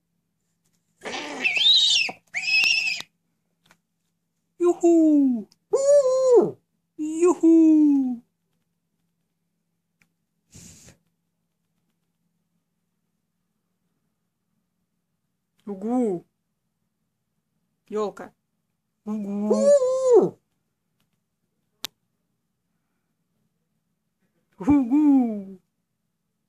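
An owl calls in short, harsh bursts close by.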